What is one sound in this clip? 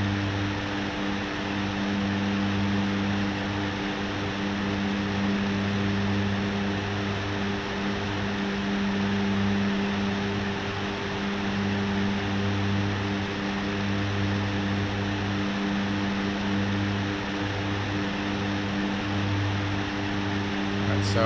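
An aircraft's propeller engines drone steadily in flight.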